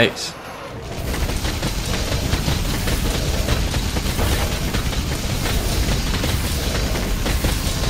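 Explosions rumble and crackle.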